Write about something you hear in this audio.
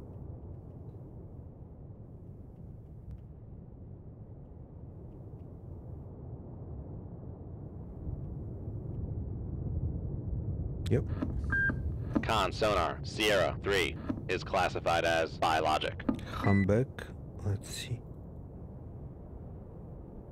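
A low, steady underwater rumble drones on.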